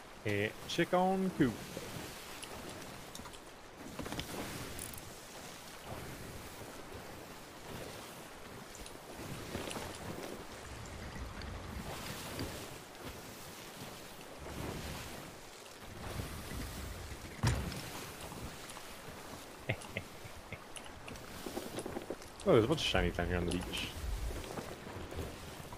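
Waves roll and splash on the open sea.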